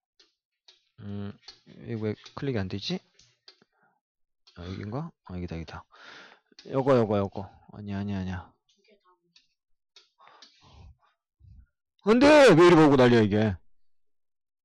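A man speaks calmly and clearly into a close microphone, as if teaching.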